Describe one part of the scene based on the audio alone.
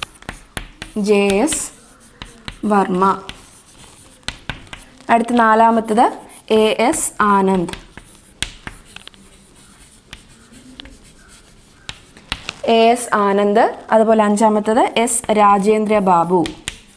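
A young woman speaks calmly and clearly, close to a microphone, with pauses.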